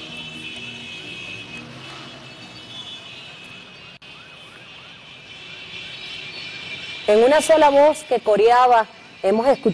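A large crowd outdoors cheers and chants loudly.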